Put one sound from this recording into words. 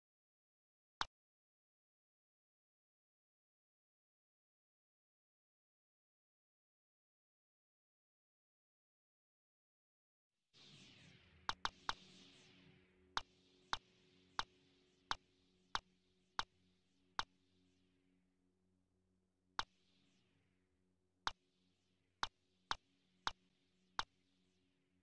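A game menu clicks sharply as options are selected.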